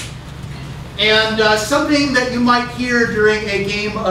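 A man speaks loudly in a strained, comic voice.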